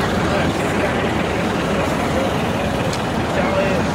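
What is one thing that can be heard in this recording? A bus engine hums as the bus rolls past nearby.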